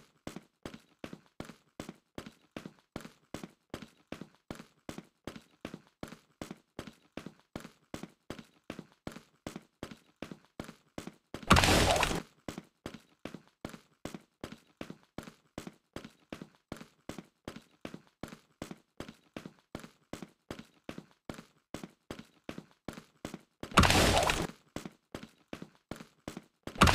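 Quick footsteps patter steadily as a game character runs.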